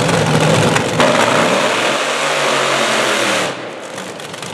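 Dragster tyres screech during a burnout.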